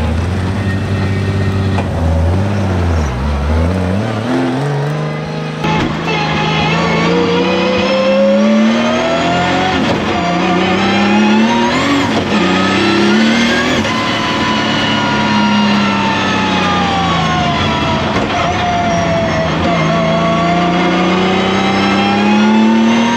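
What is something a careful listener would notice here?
A car engine roars loudly and revs up and down.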